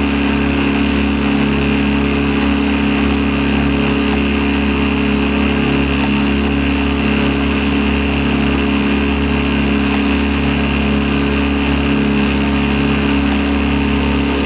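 A boat engine drones steadily and close by.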